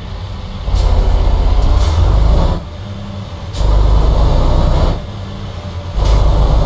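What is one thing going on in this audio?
A truck engine rumbles deeply, revving up and easing off in turns.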